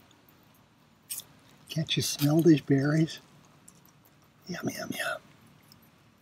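A metal spoon stirs berries in a pot.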